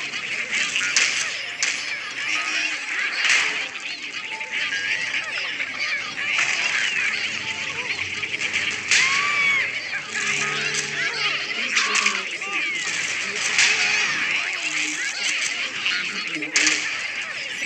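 A cartoon explosion booms.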